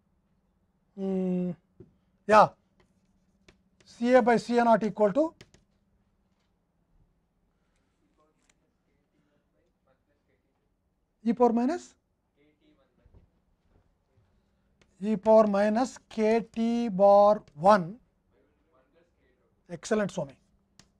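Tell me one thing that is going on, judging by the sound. An elderly man lectures calmly, in short bursts with pauses, through a microphone.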